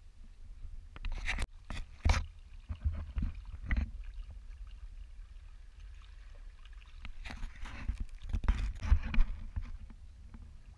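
A paddle splashes and drips in calm water.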